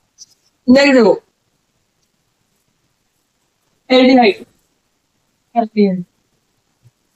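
A young man speaks clearly in short phrases, close by.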